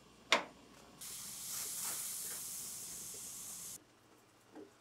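A gas burner hisses softly.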